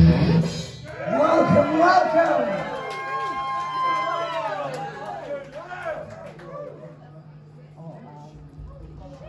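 A rock band plays loudly with electric guitars and drums.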